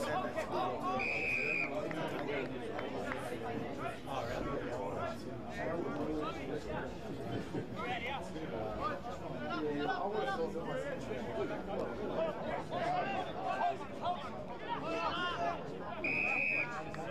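A referee's whistle blows short, sharp blasts.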